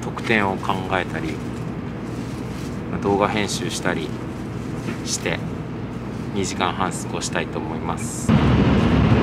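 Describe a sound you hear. A young man speaks softly close by.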